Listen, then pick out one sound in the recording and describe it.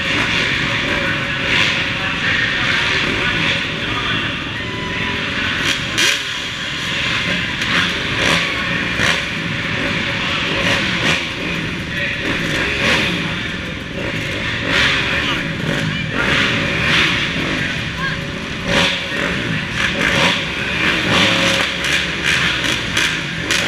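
Several dirt bike engines idle and rev close by, inside a large echoing hall.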